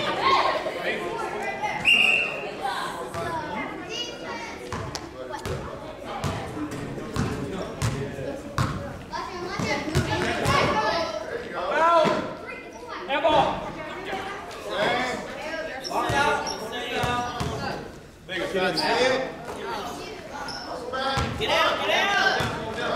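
A basketball bounces on a hard floor in a large echoing gym.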